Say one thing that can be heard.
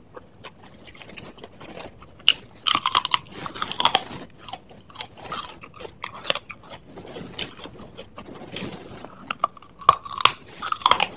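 A young woman crunches loudly on crisp raw leaves close to a microphone.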